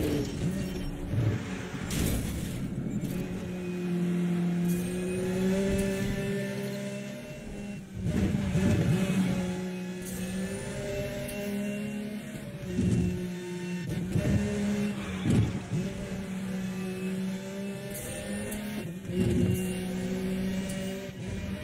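A car engine roars at high speed, its pitch rising and dropping with the gear changes.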